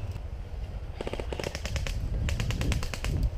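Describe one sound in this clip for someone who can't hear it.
An airsoft gun fires rapid bursts of shots close by.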